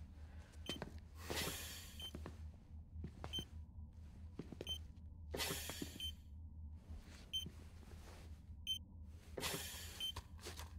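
A person breathes through an oxygen mask with a soft hiss.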